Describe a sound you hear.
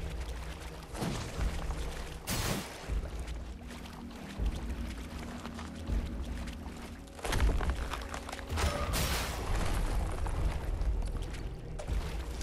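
Sword blows clash and strike.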